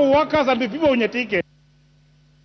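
A man speaks loudly and with animation through a microphone.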